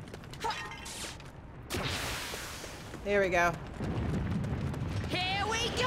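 Swords clash in a battle.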